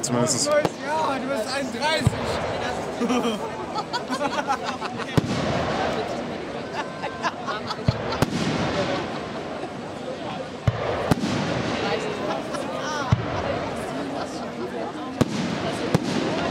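Fireworks burst with sharp bangs.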